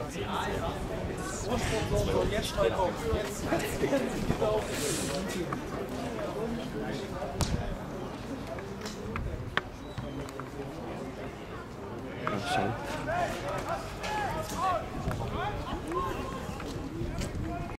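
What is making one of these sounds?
Men shout to one another across an open outdoor field.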